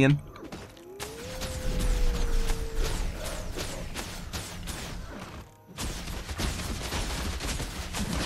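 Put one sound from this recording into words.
A sword strikes and slashes in quick bursts.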